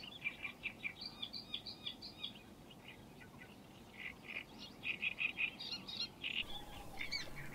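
Water birds call in quick, repeated chirps.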